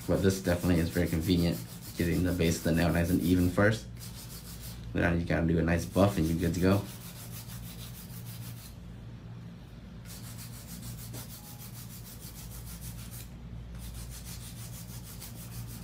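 A nail file rasps back and forth against a fingernail.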